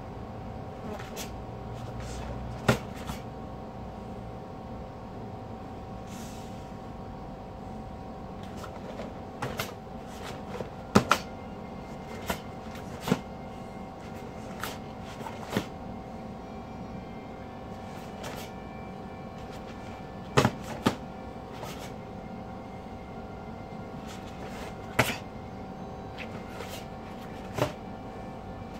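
Bare feet thump and slap on a foam mat.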